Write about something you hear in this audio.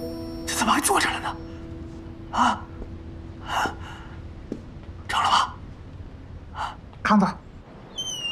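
A young woman speaks softly and questioningly, close by.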